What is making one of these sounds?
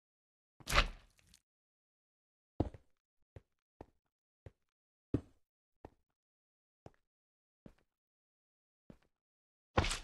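Blocks thud softly as they are placed one after another.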